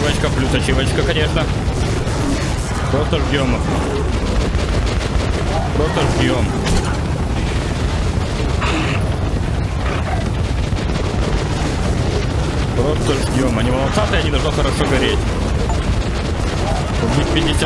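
A flamethrower roars steadily, spewing fire.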